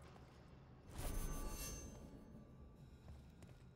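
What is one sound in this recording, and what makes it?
Smoke hisses in a sudden burst and fades.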